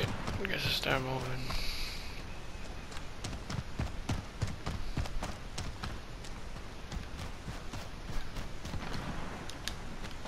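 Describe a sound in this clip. Footsteps crunch quickly over snowy ground.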